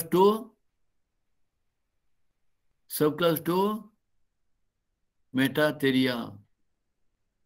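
A middle-aged man speaks calmly in short phrases through a microphone, with pauses between.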